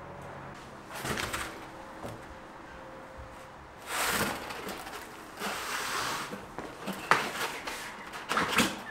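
A foam target scrapes and bumps as it is handled.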